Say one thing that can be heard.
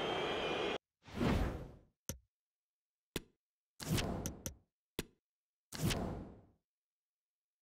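Game menu sounds whoosh and click.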